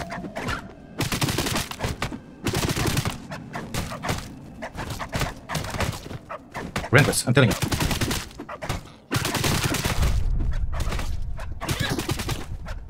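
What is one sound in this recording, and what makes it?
A spear strikes an animal with wet, fleshy thuds.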